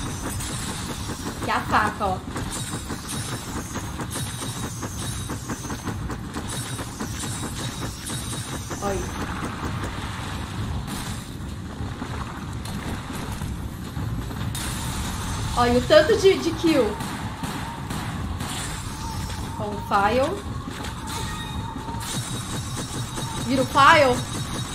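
A knife swishes through the air.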